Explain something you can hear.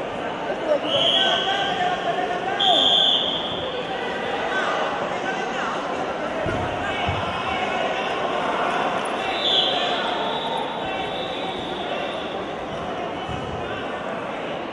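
A crowd chatters and calls out in an echoing indoor hall.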